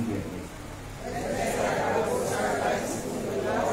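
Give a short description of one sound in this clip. A congregation of men and women sings together.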